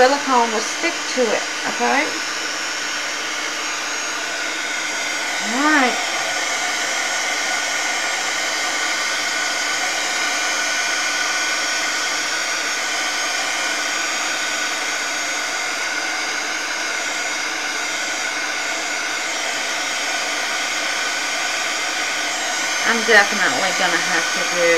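A small electric heat gun whirs and blows steadily, close by.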